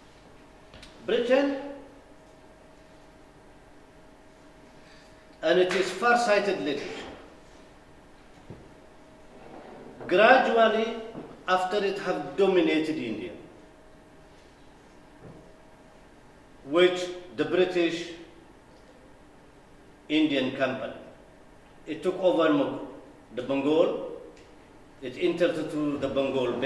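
A middle-aged man speaks calmly into a microphone, pausing often.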